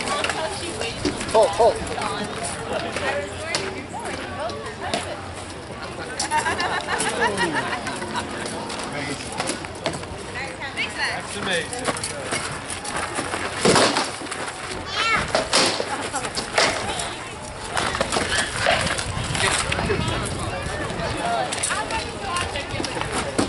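A crowd of people chatter outdoors nearby.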